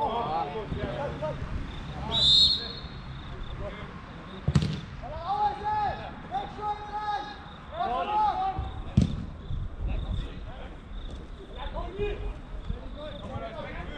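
Men shout and call out to each other across an outdoor pitch.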